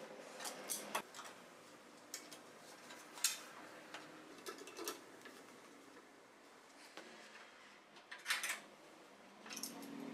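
A metal clamp screw clicks and ratchets as it is tightened.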